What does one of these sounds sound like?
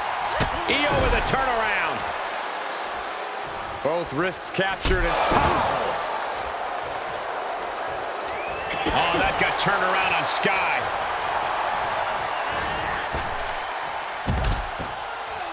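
Bodies thud heavily onto a wrestling ring's mat.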